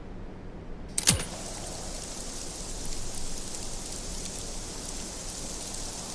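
Gas hisses out steadily.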